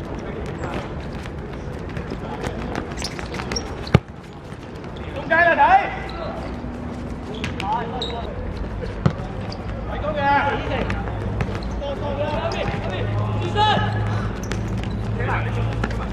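A football thuds as players kick it on a hard outdoor court.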